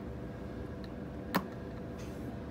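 A button clicks as it is pressed.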